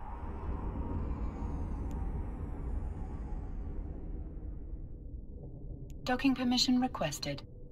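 A spaceship's engines rumble deeply and slowly fade.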